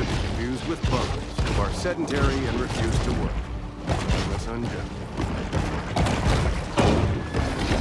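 A shark bites and thrashes with heavy thuds.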